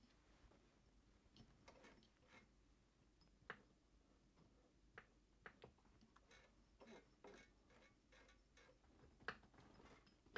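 Hands turn a sewing machine's handwheel with soft clicks and knocks.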